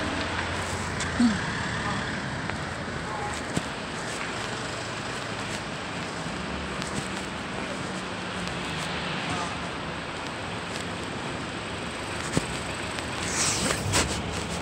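Street traffic rumbles and hums steadily outdoors.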